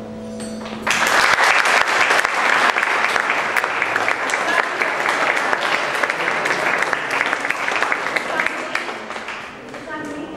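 An audience claps loudly.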